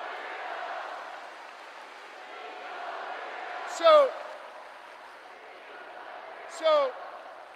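A crowd cheers and applauds in a large hall, then quiets down.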